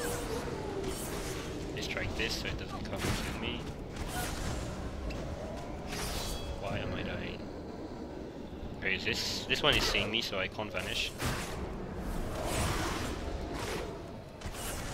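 Weapons clash and hit in quick bursts.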